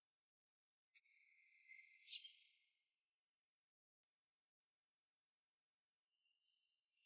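Glowing energy blasts whoosh through the air.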